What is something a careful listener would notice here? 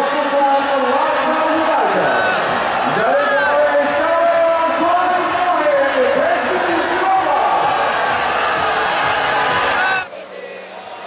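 Young men shout and cheer in celebration outdoors.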